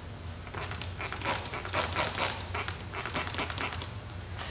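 A spray bottle hisses in short, quick bursts.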